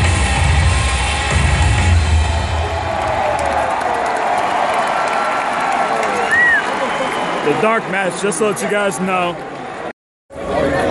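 A large crowd cheers and roars in a huge echoing arena.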